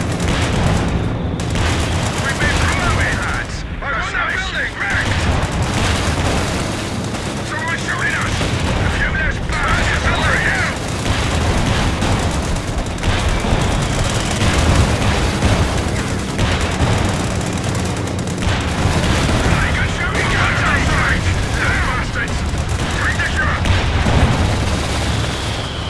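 Tank engines rumble low and steady.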